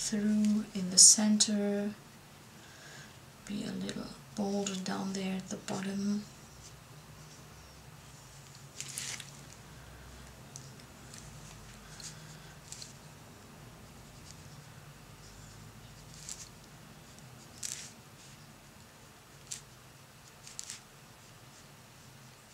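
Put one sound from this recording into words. A paintbrush dabs and brushes on watercolour paper.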